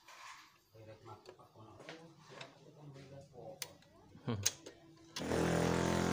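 Small metal parts click and clink as hands fit them together.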